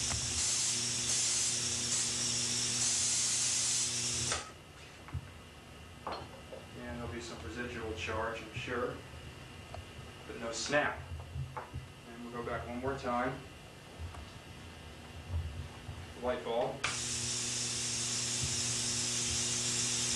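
An electric discharge hisses and crackles loudly.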